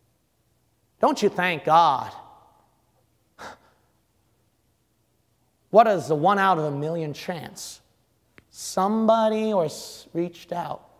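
A young man speaks with animation into a microphone, with pauses between phrases.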